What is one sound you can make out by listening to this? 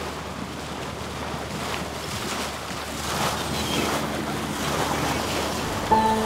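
Water splashes and churns loudly against the bow of a moving boat.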